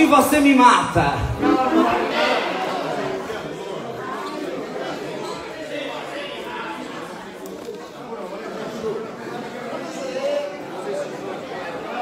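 An accordion plays a lively tune.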